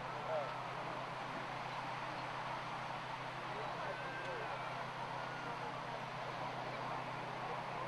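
A crowd of beachgoers chatters and calls out in the distance.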